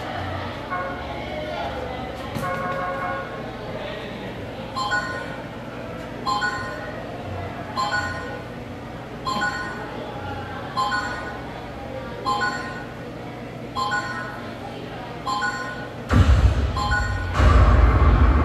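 Arcade game music and chimes play from a loudspeaker.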